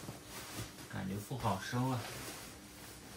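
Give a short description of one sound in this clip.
A young man speaks briefly, close by.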